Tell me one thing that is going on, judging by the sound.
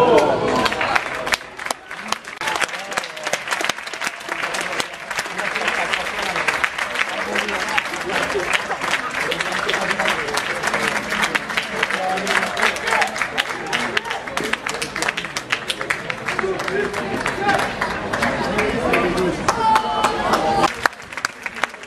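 A small crowd cheers and calls out nearby.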